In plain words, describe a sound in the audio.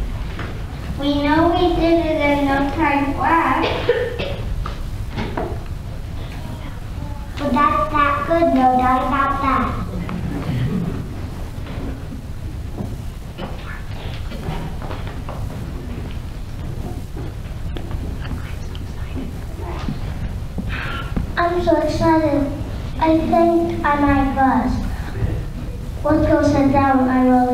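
Children sing together in a large echoing hall, heard from the audience.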